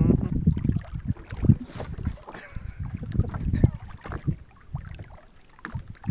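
A fishing reel clicks as line is wound in.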